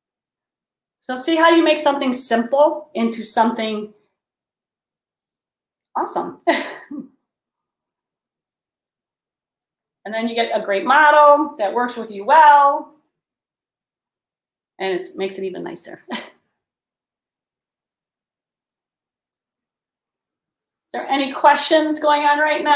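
A woman talks with animation close to a microphone, in short bursts with pauses.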